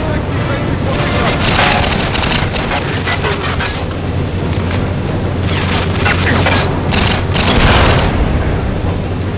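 Submachine gun fire rattles in bursts in a video game.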